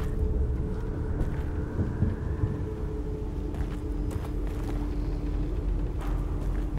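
Footsteps crunch slowly on gravel.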